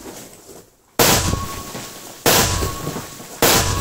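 A loud blast bursts close by.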